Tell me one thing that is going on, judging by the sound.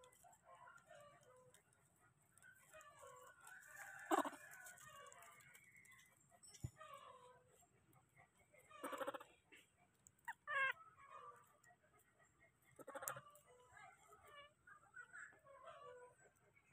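A baby monkey squeaks and whimpers close by.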